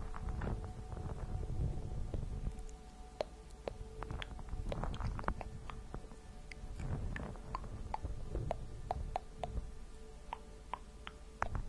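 Fingernails tap and scratch on a fabric-covered microphone.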